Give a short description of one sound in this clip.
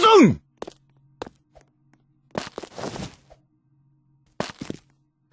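Punches land with quick, sharp thuds in a video game.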